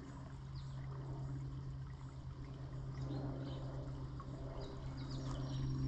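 A shallow stream trickles gently over stones.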